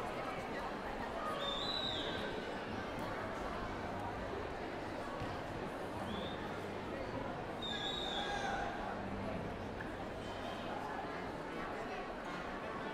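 A large orchestra plays loudly in a big reverberant concert hall.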